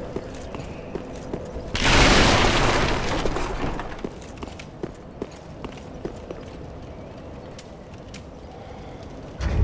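Armored footsteps clank on stone.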